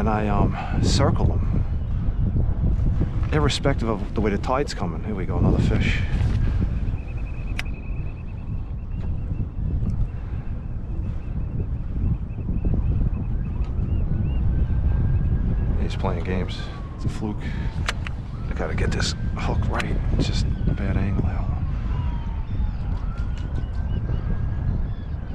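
Small waves lap against a kayak's hull.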